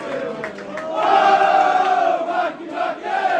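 A man nearby sings along loudly.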